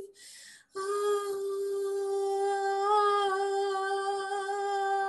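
A woman sings one long, steady note close to a microphone.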